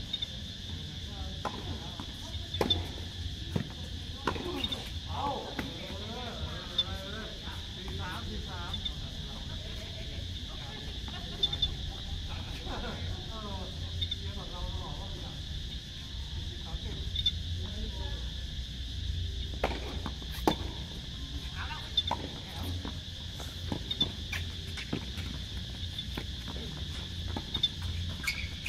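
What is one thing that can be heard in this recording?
Footsteps scuff and squeak on a hard court.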